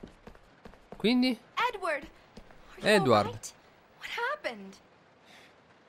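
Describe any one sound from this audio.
A young woman calls out and speaks anxiously, close by.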